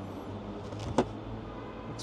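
A trunk floor panel drops shut with a thud.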